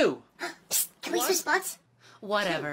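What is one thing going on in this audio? A young person speaks in a squeaky, mocking voice.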